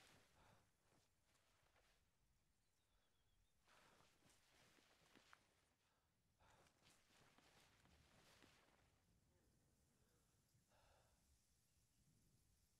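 Leaves and branches rustle as someone pushes through bushes.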